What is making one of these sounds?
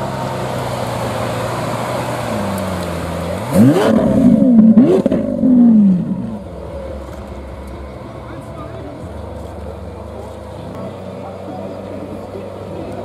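A sports car engine idles with a deep rumble.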